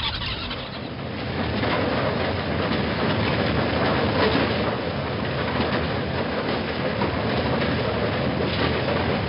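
A heavy machine rumbles and clatters steadily.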